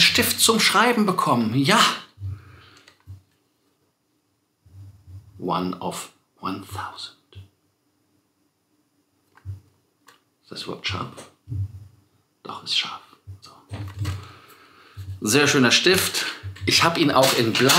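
A man talks with animation close to a microphone, with pauses.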